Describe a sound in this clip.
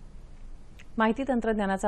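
A woman reads out the news calmly into a microphone.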